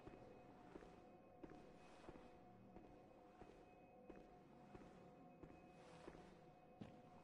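Footsteps tap on a stone floor at an even pace.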